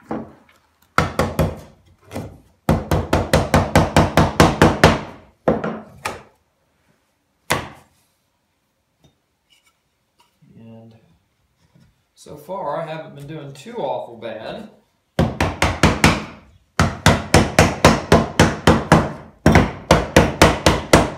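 A mallet taps rapidly on wood.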